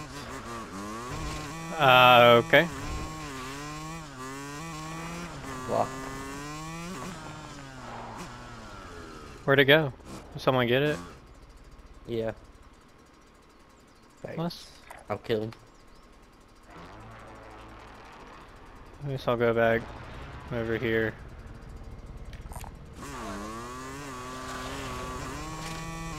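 A motorbike engine revs and rumbles.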